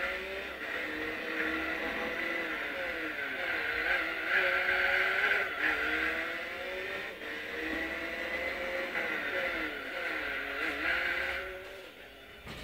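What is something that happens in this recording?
A racing car engine roars and whines, rising and falling in pitch as it shifts gears.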